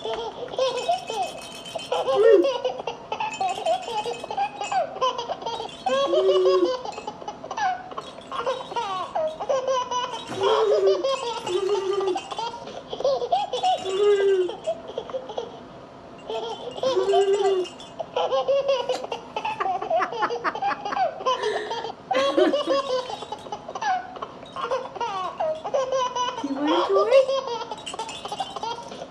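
A young woman talks in a playful, sing-song voice close by.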